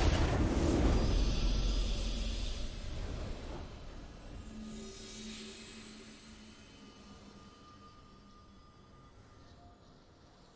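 A triumphant victory fanfare plays and slowly fades.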